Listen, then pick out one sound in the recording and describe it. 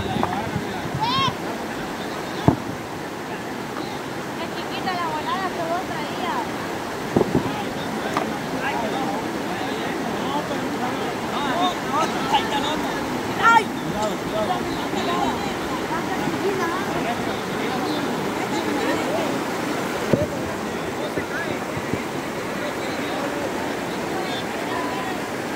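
A river rushes steadily over rocks outdoors.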